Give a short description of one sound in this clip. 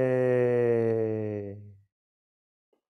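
A man chants a long, steady note that fades out.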